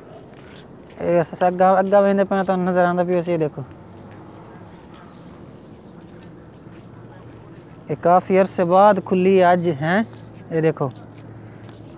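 A young man speaks calmly close to the microphone, outdoors.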